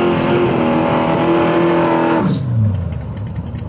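A V8 muscle car accelerates hard and speeds away.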